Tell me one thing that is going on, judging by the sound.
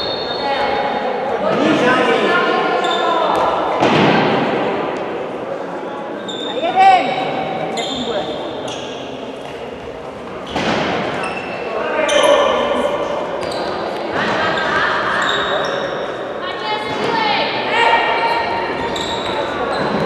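Young girls shout and call out to each other in a large echoing hall.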